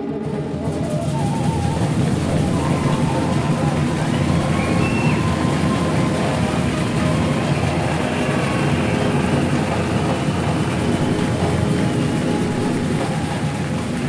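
A man beats a bass drum with sticks.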